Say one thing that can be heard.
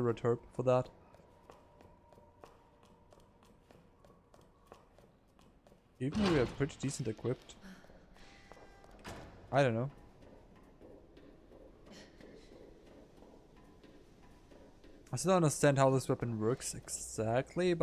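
Footsteps tread steadily on hard stairs and metal grating.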